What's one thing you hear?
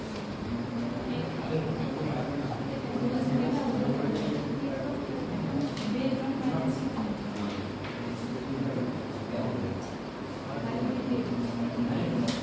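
A young man talks steadily nearby.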